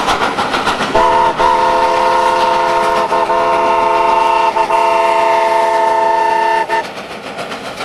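A steam whistle blows a long steady chord.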